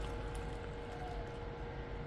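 Liquid pours into a mug.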